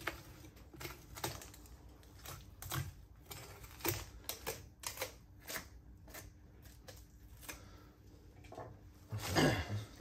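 A knife scrapes and cuts through meat and bone.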